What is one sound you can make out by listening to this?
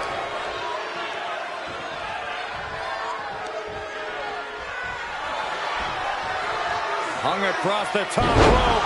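A large crowd cheers and roars loudly throughout.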